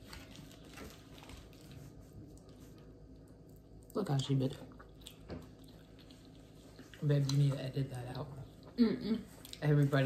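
A young woman chews food noisily close by.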